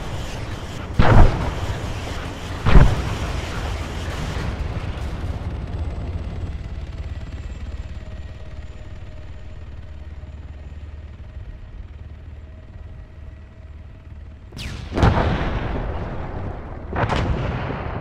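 Loud explosions boom, each followed by a rumbling echo.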